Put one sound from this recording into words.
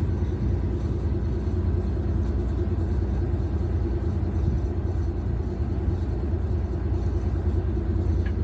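Wind blows steadily and rumbles against the microphone outdoors.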